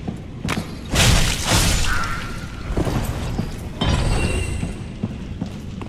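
A sword swings and slashes with a heavy impact.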